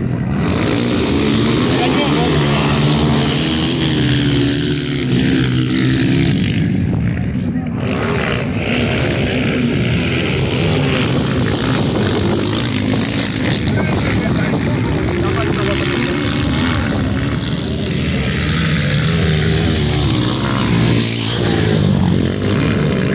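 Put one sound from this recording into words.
Dirt bike engines rev loudly nearby, rising and falling in pitch.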